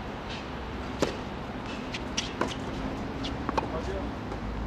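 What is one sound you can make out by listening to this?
A racket strikes a tennis ball with sharp pops, back and forth.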